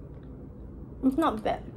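A teenage girl speaks playfully close by.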